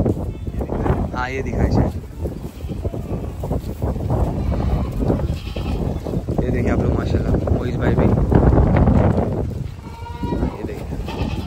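Goats bleat nearby.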